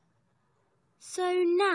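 A young girl speaks over an online call.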